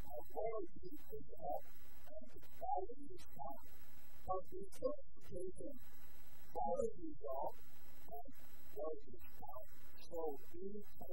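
A man speaks steadily through a microphone in a large hall.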